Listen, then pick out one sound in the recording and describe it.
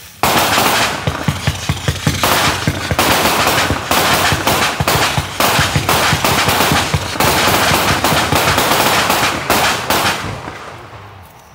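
A firework cake fires a rapid volley of shots that crackle and bang.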